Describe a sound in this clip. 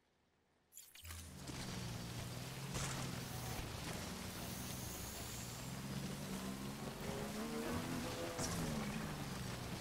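A motorbike engine hums steadily as it drives over rough ground.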